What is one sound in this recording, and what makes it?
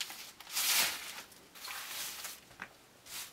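A hand rubs against rough log walls.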